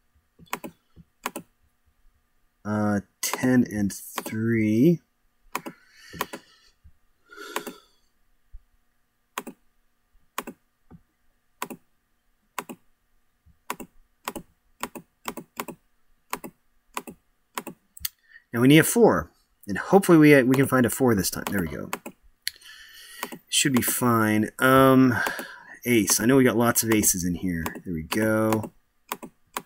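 Game cards click softly as they are played.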